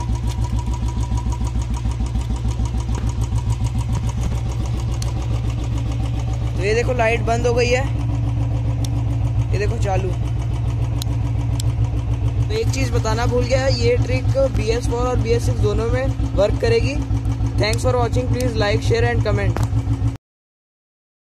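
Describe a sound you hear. A motorcycle engine idles with a steady, fast low thumping.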